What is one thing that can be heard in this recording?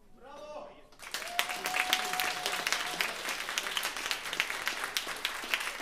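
A band starts playing loudly.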